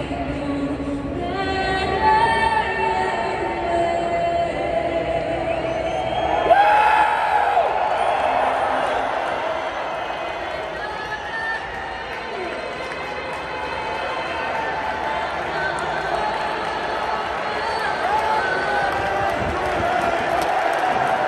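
A huge stadium crowd roars and cheers, echoing through the open stands.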